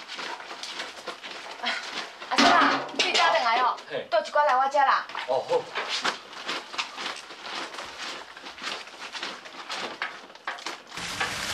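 Clothes splash and rub in a basin of water.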